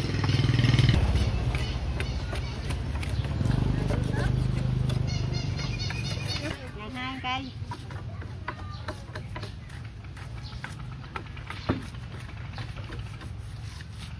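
Wooden poles knock and clatter as a woman handles them.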